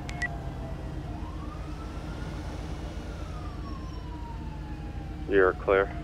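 A truck engine rumbles as the truck drives past on a road.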